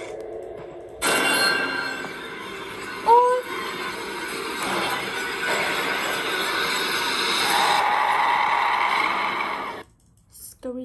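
A loud, harsh screeching noise blares and then cuts off abruptly.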